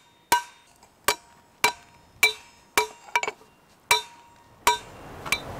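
A hammer strikes metal in sharp, ringing blows at a steady pace.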